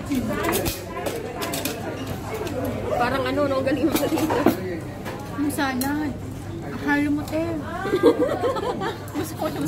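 Utensils clink against a plate.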